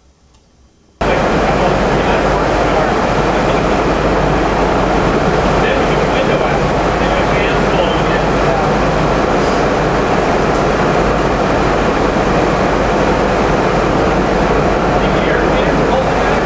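A large engine starts up suddenly and roars loudly and steadily at close range.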